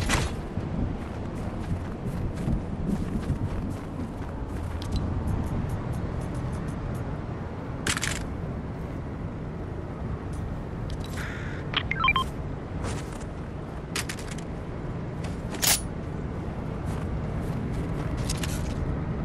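Footsteps patter quickly on snow and wooden planks.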